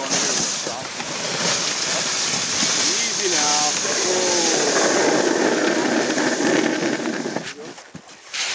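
A sled's runners hiss steadily over snow.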